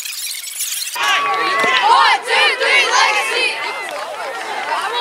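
Young boys in a huddle chant and cheer together loudly outdoors.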